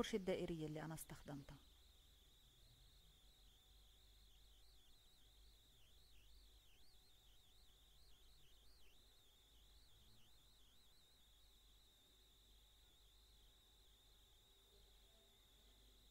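A paintbrush strokes softly across paper.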